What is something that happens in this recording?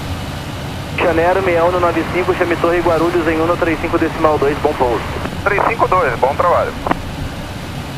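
A man speaks calmly through a headset microphone.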